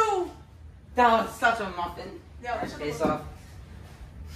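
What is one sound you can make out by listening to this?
Young boys talk and laugh.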